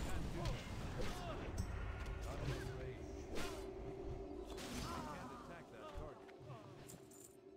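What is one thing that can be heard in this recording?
Magic spells whoosh and crackle in quick bursts during a game fight.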